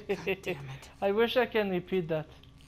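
A young woman speaks in frustration.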